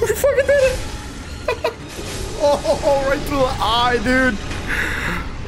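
A young man exclaims and shouts excitedly into a microphone.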